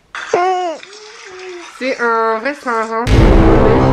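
A young boy laughs.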